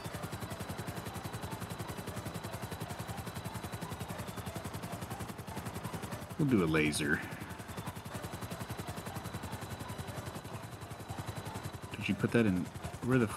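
A helicopter's rotor blades thump rapidly and steadily overhead.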